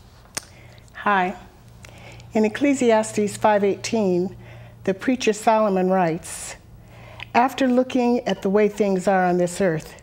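A middle-aged woman speaks calmly into a close microphone, reading aloud.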